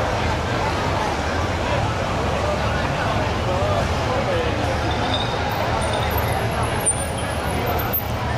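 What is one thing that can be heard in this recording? Motorcycle engines idle with a low rumble.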